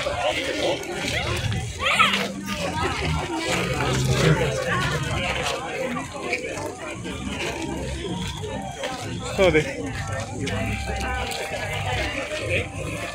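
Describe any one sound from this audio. A crowd of men, women and children chatters nearby outdoors.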